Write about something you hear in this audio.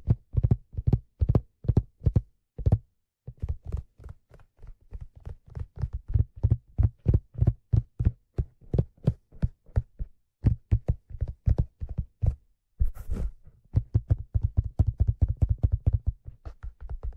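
A handpan rings with soft, resonant tones as fingers tap out a quick rhythm.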